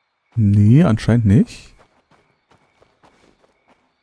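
Footsteps run over gravel.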